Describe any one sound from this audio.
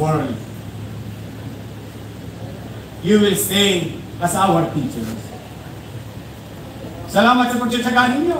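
A man speaks slowly and firmly through a microphone and loudspeakers outdoors, pausing between phrases.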